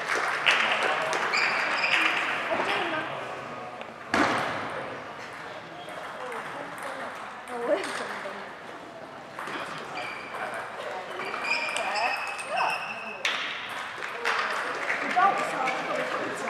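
A ping-pong ball clicks back and forth across a table, echoing in a large hall.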